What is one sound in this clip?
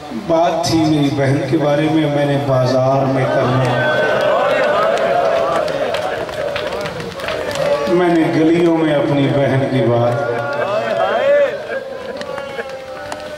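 A man chants loudly and with emotion into a microphone, heard through loudspeakers.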